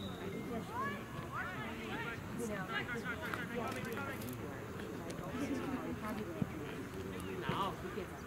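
Young players shout to each other across an open field in the distance.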